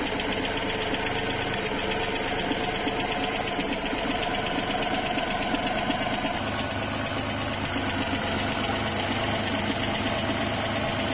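An old engine idles with a steady, rattling chug, heard up close.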